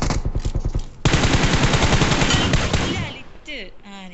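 Automatic gunfire rattles rapidly.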